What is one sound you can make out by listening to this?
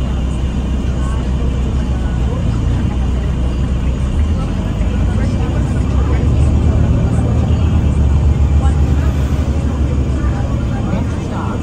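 A bus engine rumbles steadily and grows louder as the bus moves off.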